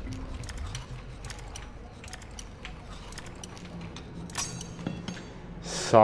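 A lock pick clicks and scrapes inside a lock.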